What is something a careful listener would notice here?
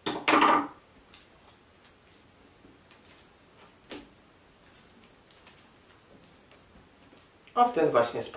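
Paper cards rustle and tap on a table.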